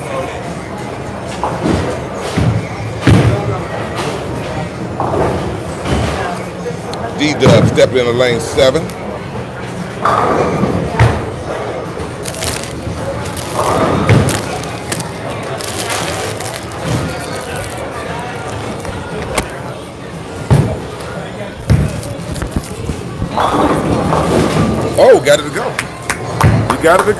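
Bowling balls roll down wooden lanes and crash into pins.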